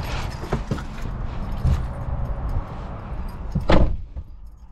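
A car window winds down with a whirring hum.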